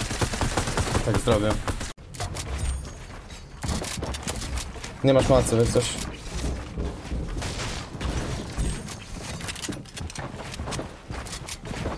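Quick clicks and thuds of building pieces snapping into place sound throughout.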